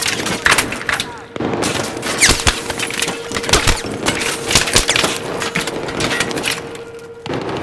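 Gunshots crack in rapid bursts, echoing around.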